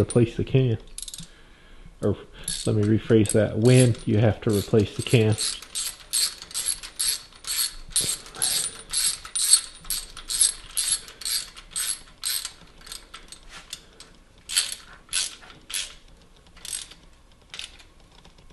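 A ratchet wrench clicks rapidly in short bursts.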